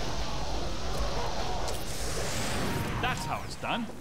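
An energy beam crackles and roars.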